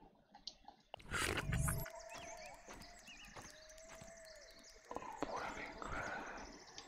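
Footsteps patter over soft ground.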